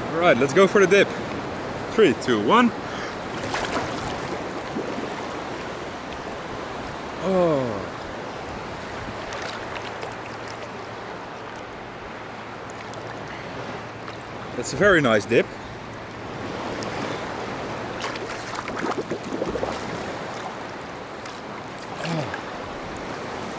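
Water splashes and laps around a swimmer.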